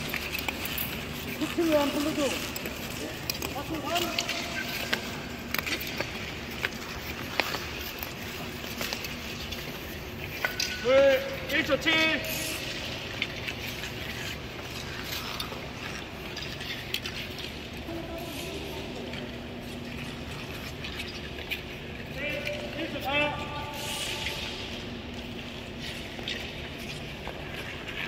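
Ice skate blades scrape and hiss across the ice.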